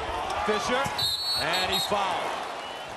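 A referee blows a shrill whistle.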